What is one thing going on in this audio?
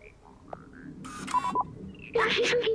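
A small robot drone chirps and beeps electronically.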